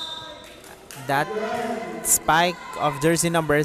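Young women shout and cheer loudly in an echoing hall.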